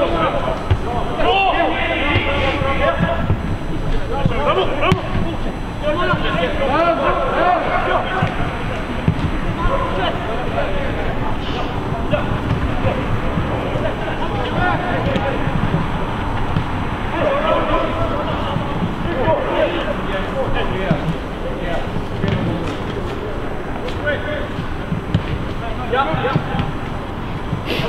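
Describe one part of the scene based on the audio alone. Players shout to one another from across an open pitch, heard from a distance outdoors.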